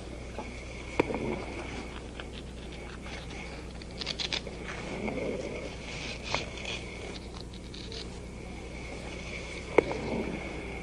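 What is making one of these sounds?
Small objects click and tap sharply now and then.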